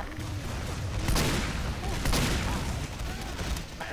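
Gunshots crack in quick bursts.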